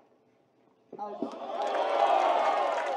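A crowd applauds and cheers outdoors.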